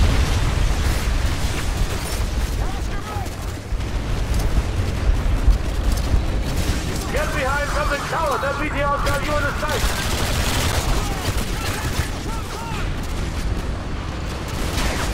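Explosions rumble and boom.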